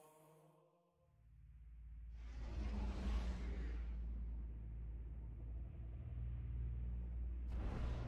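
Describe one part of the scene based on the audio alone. A spacecraft engine hums with a deep, steady rumble.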